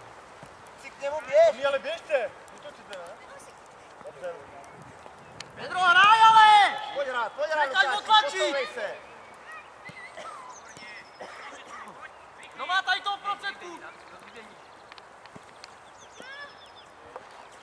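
Young boys shout to each other across an open field.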